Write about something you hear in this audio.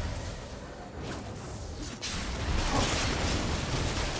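Fantasy game spells whoosh and crackle during a fight.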